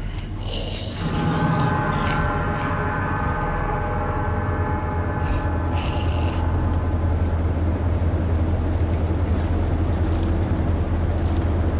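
Machinery hums low and steadily.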